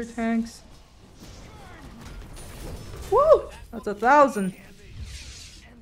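Magic spells crackle and burst during a fight.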